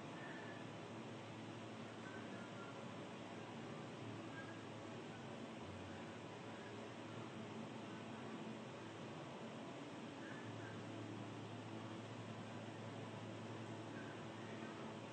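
An older woman speaks calmly and softly close to a microphone.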